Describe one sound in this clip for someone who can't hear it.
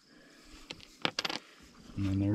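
A coin clicks down onto a plastic tray.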